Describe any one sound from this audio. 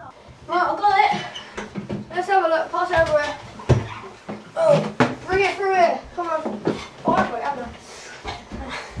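Boys talk with animation close by.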